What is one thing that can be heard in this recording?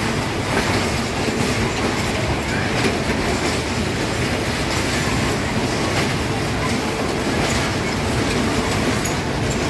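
A fairground ride rumbles and whirs as its cars spin.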